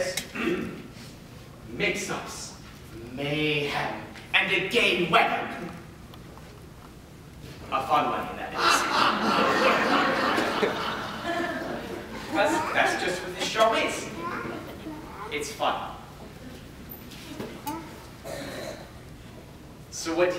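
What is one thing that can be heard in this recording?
A young man speaks loudly and with animation, heard from the audience.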